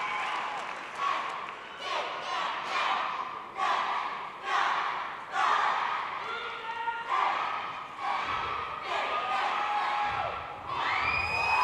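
Young women shout a chant in rhythm.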